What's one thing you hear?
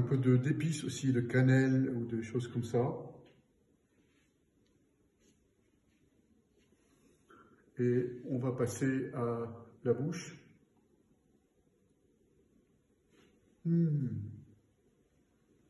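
A middle-aged man speaks calmly and closely, in short bursts.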